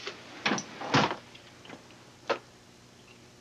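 A woman knocks on a wooden door.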